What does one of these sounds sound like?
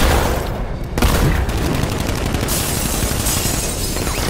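Gas hisses loudly from a bursting canister.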